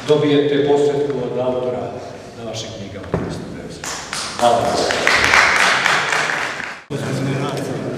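A middle-aged man speaks calmly through a microphone in an echoing hall.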